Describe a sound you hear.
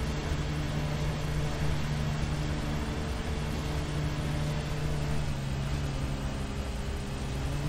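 A lawn mower engine hums steadily while cutting grass.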